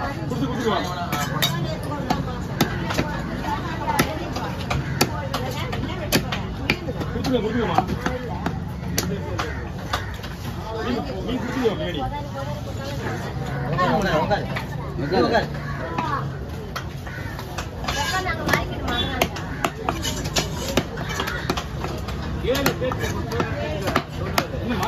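A cleaver chops and thuds on a wooden block.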